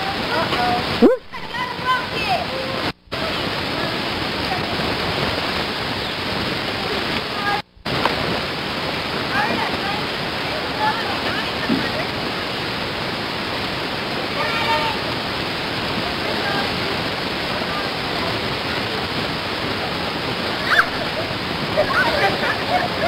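Young children call out and chatter nearby outdoors.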